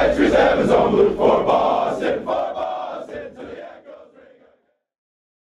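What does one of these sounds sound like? A crowd of young men cheers and shouts loudly in an echoing room, then fades away.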